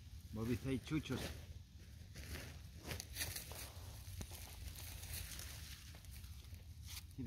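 A plastic sack rustles and crinkles as it is handled.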